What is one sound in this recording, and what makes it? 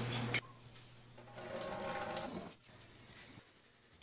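Water trickles from a wrung-out towel into a steel sink.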